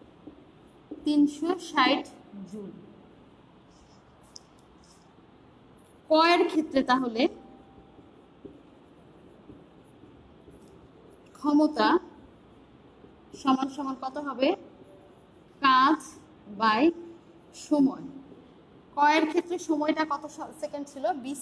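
A woman speaks in short bursts, calmly explaining, close by.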